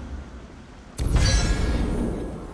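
A card lands with a sudden magical whoosh.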